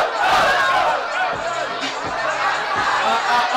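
A young man raps into a microphone.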